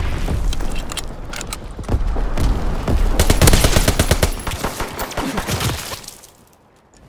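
Rapid gunshots crack loudly close by.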